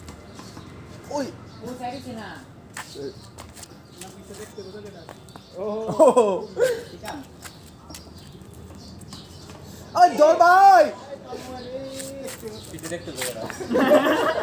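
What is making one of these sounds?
Boys shout to each other outdoors.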